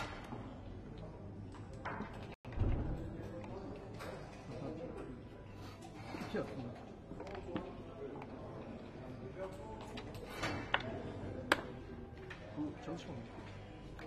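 Dice rattle in a cup and clatter onto a board.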